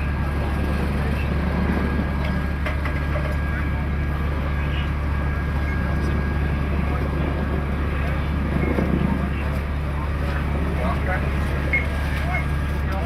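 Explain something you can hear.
An engine hums steadily close by.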